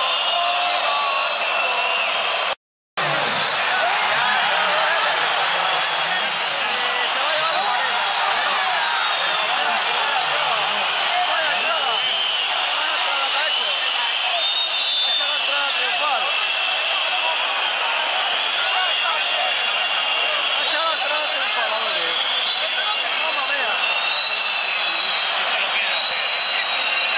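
A crowd whistles shrilly.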